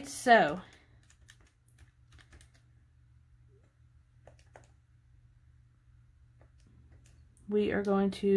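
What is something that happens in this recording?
Calculator buttons click softly as they are pressed.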